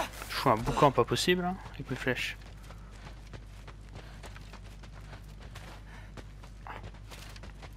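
Footsteps hurry over stone.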